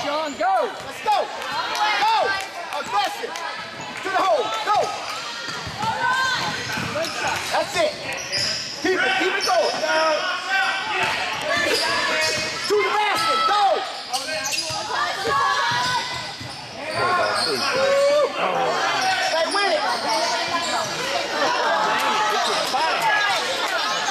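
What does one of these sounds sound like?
Spectators chatter and call out in an echoing gym.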